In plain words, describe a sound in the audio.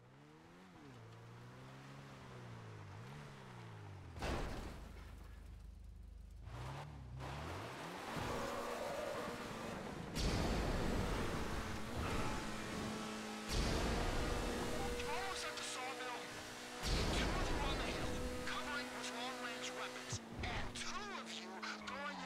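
A car engine revs and hums steadily as the car drives along.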